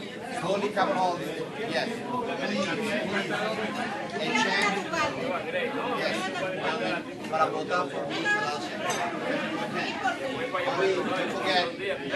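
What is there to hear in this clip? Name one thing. A man talks into a handheld microphone, heard through a loudspeaker.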